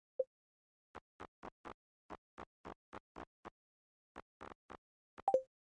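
Short menu clicks tick one after another.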